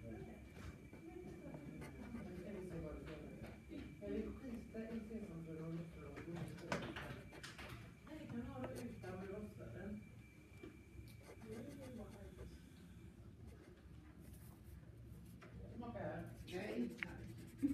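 A colored pencil scratches softly across paper.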